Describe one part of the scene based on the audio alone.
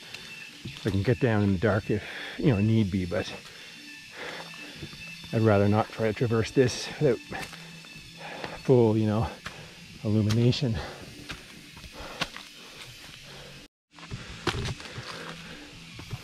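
Footsteps crunch on dry leaves and stones.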